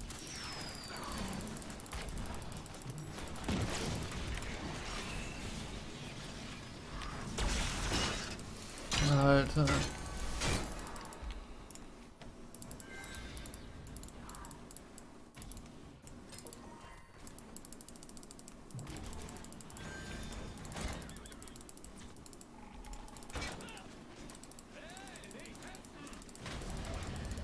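Game sound effects of clashing combat and spell blasts ring out.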